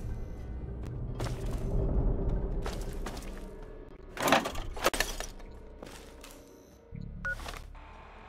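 Footsteps thud on a hard floor in an echoing corridor.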